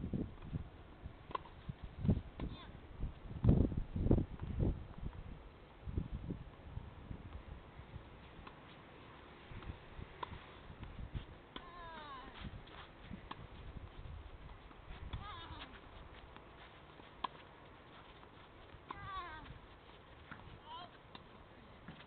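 A tennis ball is hit with a racket and bounces on a clay court.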